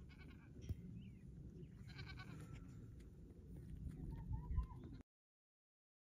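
A small lamb's hooves shuffle and step on dry ground.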